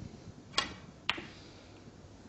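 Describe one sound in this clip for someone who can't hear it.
Snooker balls click together.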